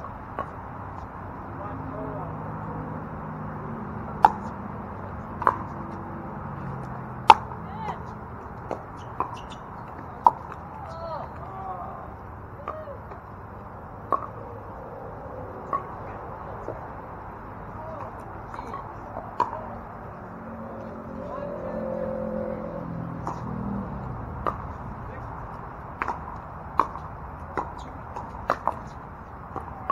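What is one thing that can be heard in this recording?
Paddles pop sharply against a plastic ball again and again outdoors.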